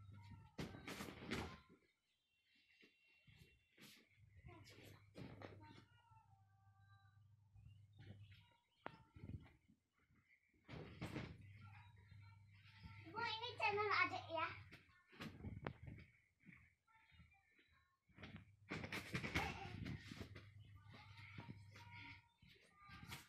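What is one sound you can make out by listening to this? Feet thump on a soft mattress as children jump.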